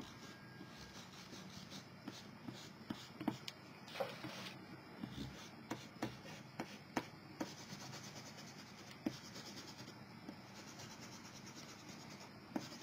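An eraser rubs softly across paper.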